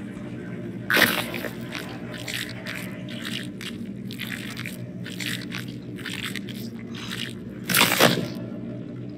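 Wet flesh squelches and tears.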